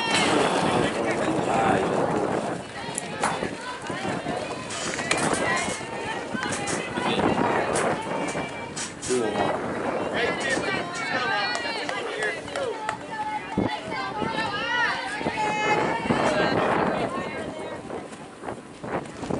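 Young women call out and cheer nearby outdoors.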